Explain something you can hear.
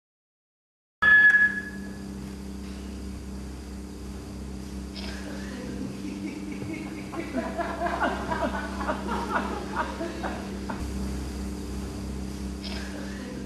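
A small group of voices sings together in a large echoing hall.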